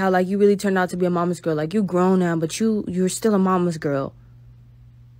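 A young woman talks close to a phone microphone.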